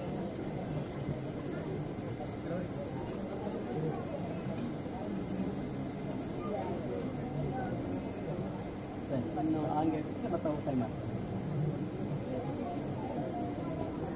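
A crowd of men and women murmurs and chats nearby.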